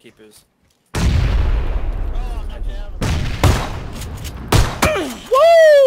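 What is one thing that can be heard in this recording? Gunshots fire loudly in quick bursts.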